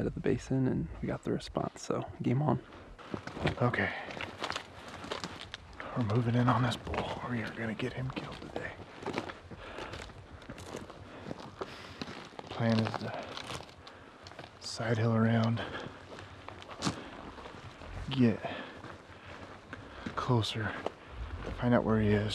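A man talks calmly and closely.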